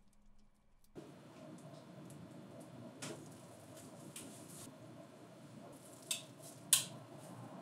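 A machine fan hums steadily.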